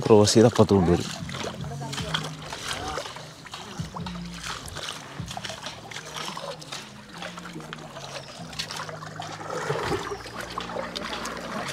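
An oar splashes softly in calm water.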